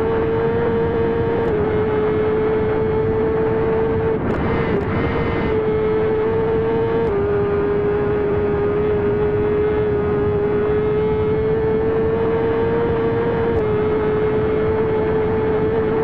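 A motorcycle engine roars at high speed with a steady, high whine.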